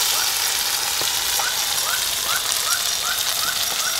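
A spoon clinks while stirring food in a bowl.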